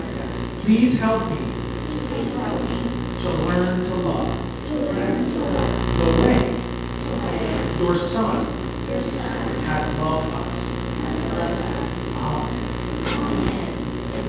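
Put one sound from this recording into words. A man speaks calmly in a large echoing room.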